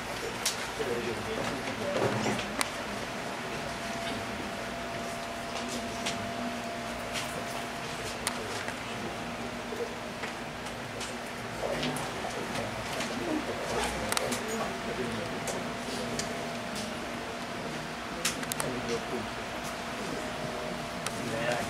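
A crowd of people murmurs quietly in the background.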